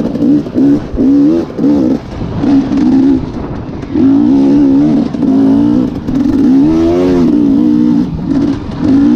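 Dry leaves crunch under a dirt bike's tyres.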